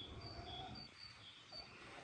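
Oil trickles into a metal tray.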